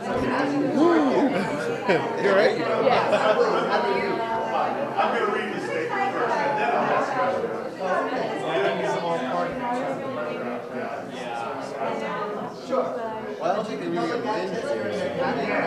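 Several young men talk and shout excitedly close by.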